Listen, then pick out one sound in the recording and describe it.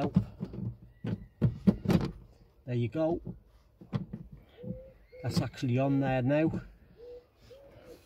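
Plastic clicks and knocks as a hand works under a car's dashboard.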